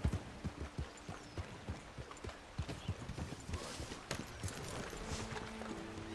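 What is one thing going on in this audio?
Horse hooves clop slowly on a dirt path.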